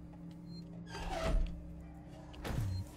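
A heavy metal lever clunks as it is pulled.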